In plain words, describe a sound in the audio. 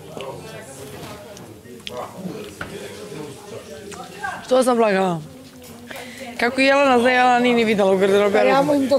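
A young woman talks quietly nearby.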